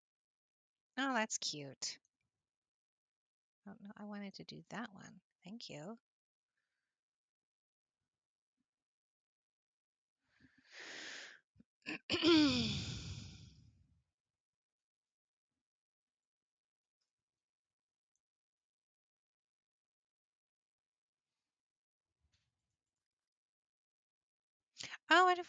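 A woman speaks with animation close to a headset microphone.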